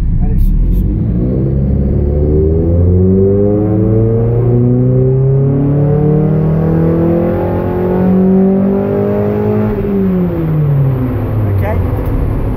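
A car engine revs steadily higher into a loud roar, then quickly drops back down.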